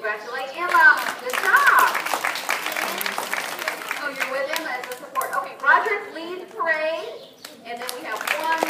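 An elderly woman speaks with animation through a microphone.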